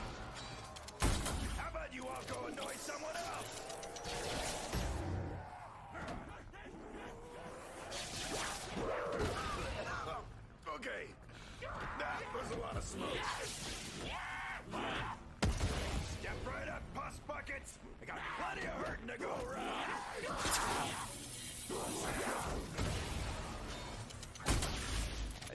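Guns fire in loud sudden bursts.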